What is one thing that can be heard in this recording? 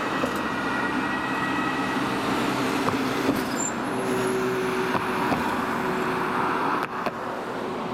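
A vehicle engine roars as it passes close by.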